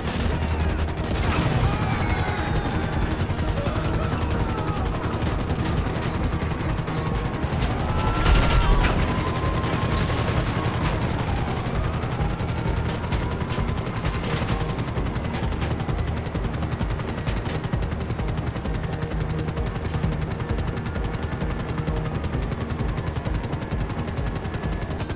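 A helicopter's engine whines as it lifts off and flies.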